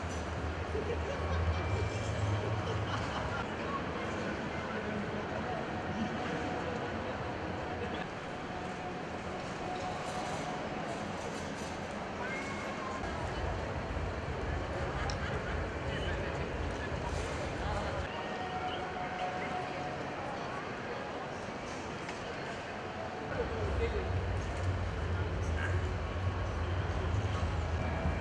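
A large echoing hall hums with a distant murmur of crowd chatter.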